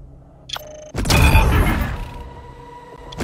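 A bright game chime rings out with a whooshing burst as a level is reached.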